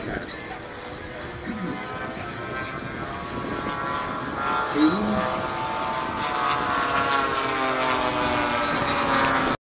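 A crowd of people murmurs nearby.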